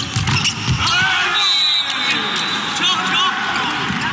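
Players' shoes squeak on the court.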